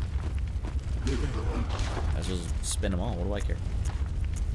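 A man talks close to a microphone, with animation.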